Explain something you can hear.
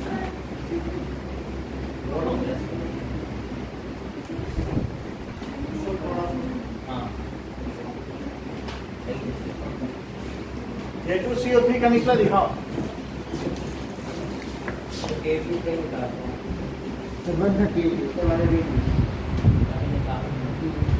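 A man speaks calmly close by, as if lecturing.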